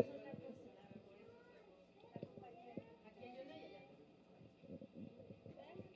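A middle-aged woman speaks softly into a microphone.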